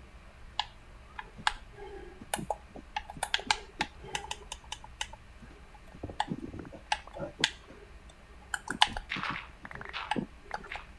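Blocks crack and break with quick sharp clicks in a game.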